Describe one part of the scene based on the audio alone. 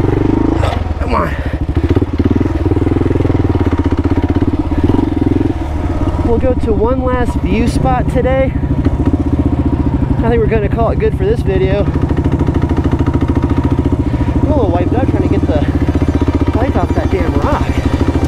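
A motorcycle engine hums steadily up close.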